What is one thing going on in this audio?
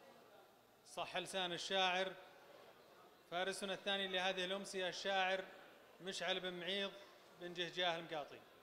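A man recites into a microphone in a loud, chanting voice, heard through loudspeakers in a large echoing hall.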